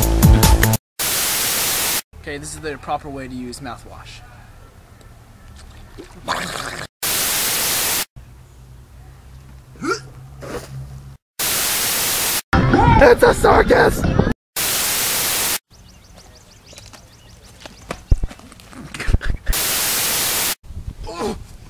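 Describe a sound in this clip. Loud static hisses in short bursts.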